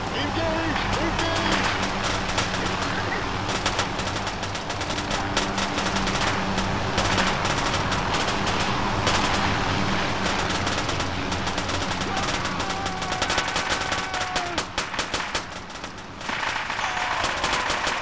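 Rapid gunfire crackles in bursts.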